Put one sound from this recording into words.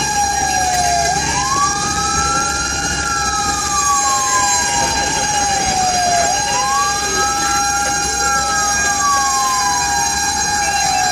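A siren wails up and down, close by.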